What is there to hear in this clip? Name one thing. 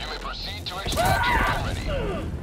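A loud blast booms close by.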